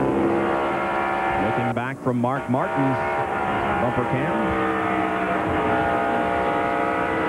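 A race car engine roars loudly and steadily at high speed.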